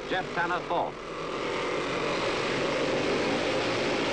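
Several motorcycle engines whine as they approach.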